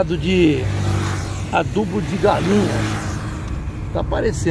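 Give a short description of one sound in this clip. A motorcycle engine passes close by.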